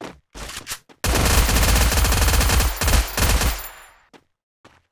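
A gun fires rapid bursts of shots, loud and close.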